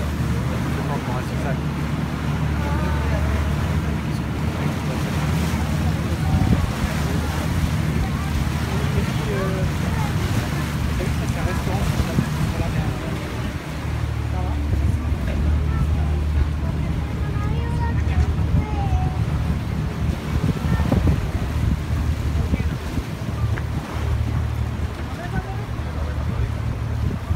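Wind blows hard across the open deck.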